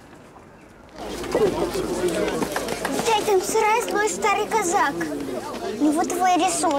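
A young girl speaks excitedly and quickly, close by.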